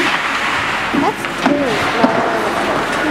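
Hockey sticks clack on the ice.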